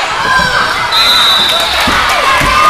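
A referee's whistle blows a short, steady blast.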